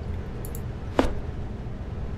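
A small wooden cabinet door swings open with a soft thud.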